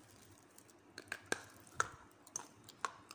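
Dry chalky pieces crack and crumble between fingers.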